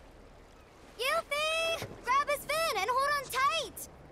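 A second young woman calls out excitedly.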